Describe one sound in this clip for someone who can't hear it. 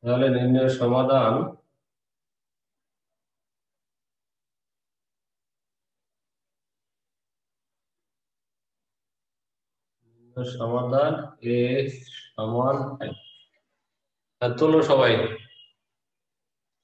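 A man speaks calmly nearby, with long pauses.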